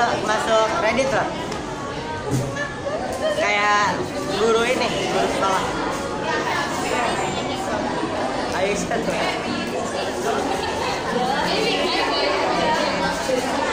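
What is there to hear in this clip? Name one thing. Young women sing into microphones.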